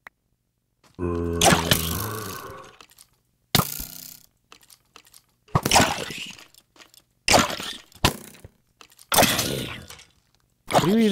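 A pig squeals in pain.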